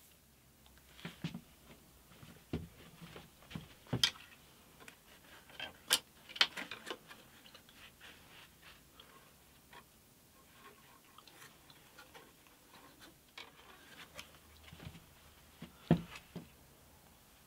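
Wooden frames knock and clatter against each other on a workbench.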